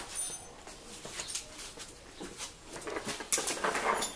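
Loose metal tools clatter in a box.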